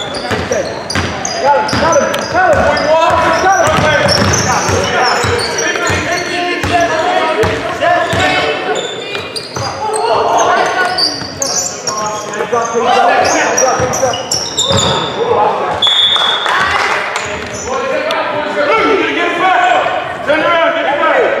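Young men shout and call out to each other across the hall.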